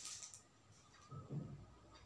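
Bottles clink on a table.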